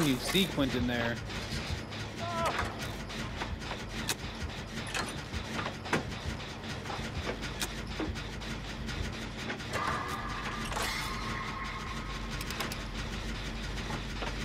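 Metal parts clank as a machine is repaired.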